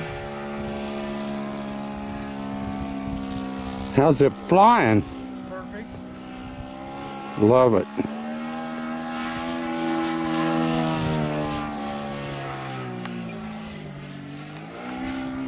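A small aircraft engine drones overhead, its pitch rising and falling as it flies.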